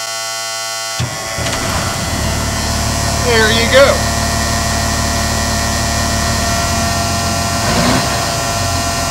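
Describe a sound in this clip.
A diesel engine starts up and idles with a low, steady rumble.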